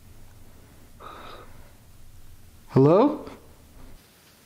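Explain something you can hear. A man speaks in a hushed, tense voice.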